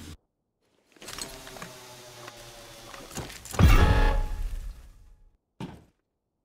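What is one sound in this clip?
A deep rumbling whoosh swells and then fades.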